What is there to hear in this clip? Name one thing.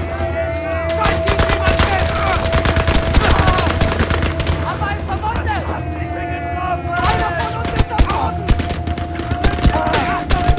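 A submachine gun fires in rapid, loud bursts.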